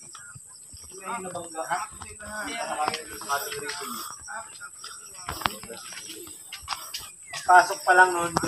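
Several women talk and call out close by, outdoors.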